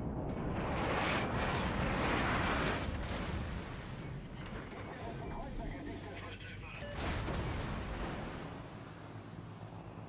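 Shells crash into water with loud splashes.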